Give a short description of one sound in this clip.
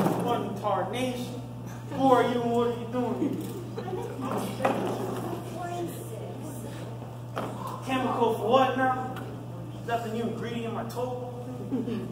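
A young woman speaks, heard from a distance in an echoing hall.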